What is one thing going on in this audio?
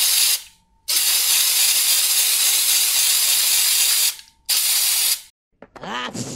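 An aerosol spray can hisses in long bursts.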